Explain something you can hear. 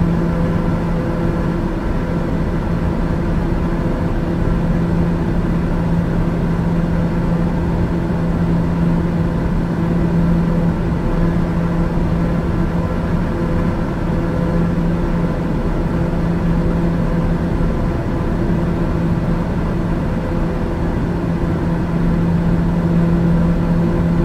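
Aircraft engines drone steadily in the cabin.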